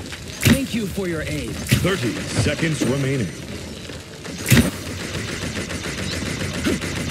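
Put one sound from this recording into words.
A bow fires sharp, snapping shots.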